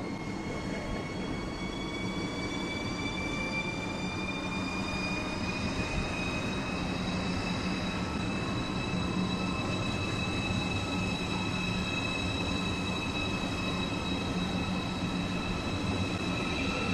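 A second high-speed electric train rolls in on the neighbouring track.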